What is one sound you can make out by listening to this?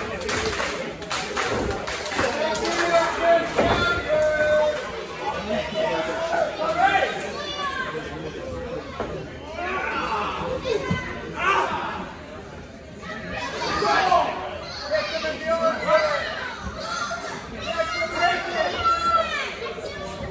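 A crowd of spectators cheers and shouts in a large echoing hall.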